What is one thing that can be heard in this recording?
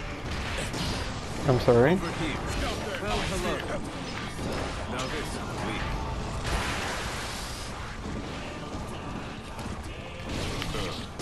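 Dramatic game music plays.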